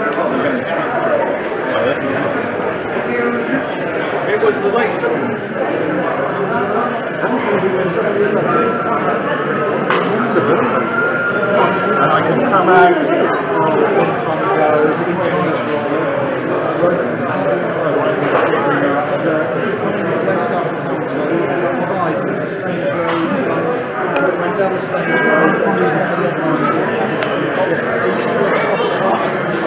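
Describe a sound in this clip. A crowd of people chatters steadily in a large echoing hall.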